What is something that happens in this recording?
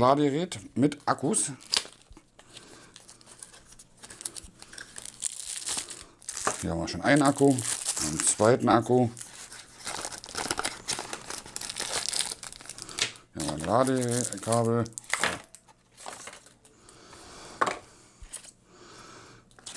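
Plastic and paper packaging rustles and crinkles as it is unwrapped.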